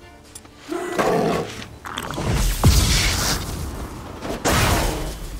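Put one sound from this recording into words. A sword swings and strikes with sharp whooshes and impacts.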